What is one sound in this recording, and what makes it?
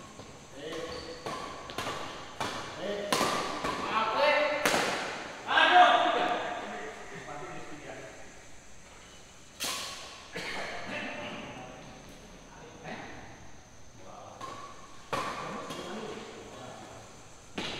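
Badminton rackets smack a shuttlecock back and forth in an echoing indoor hall.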